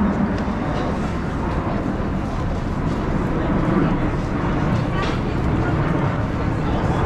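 Footsteps shuffle on pavement nearby.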